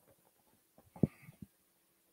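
Utensils clink against a pan.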